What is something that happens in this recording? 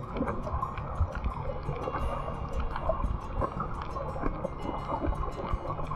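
A low underwater rumble of moving water fills the stretch.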